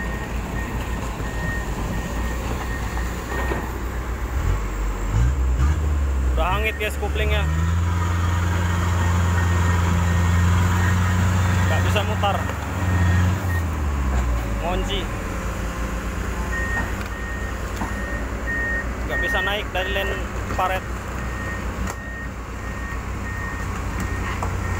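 A heavy diesel engine rumbles and roars nearby.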